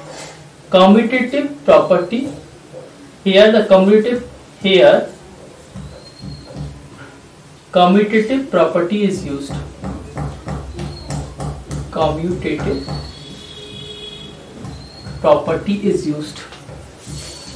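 A man explains calmly, as if teaching.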